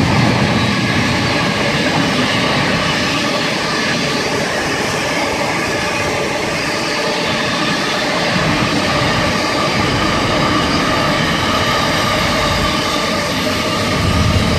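A long freight train rumbles past close by, wheels clattering and squealing on the rails.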